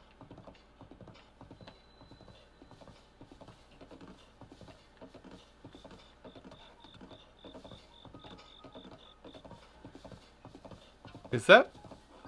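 Horse hooves beat in a steady gallop.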